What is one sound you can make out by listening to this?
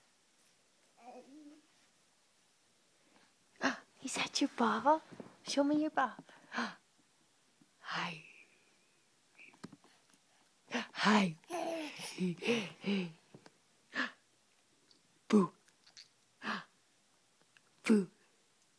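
A baby babbles and squeals nearby.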